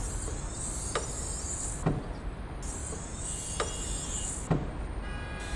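A bus luggage hatch clunks shut.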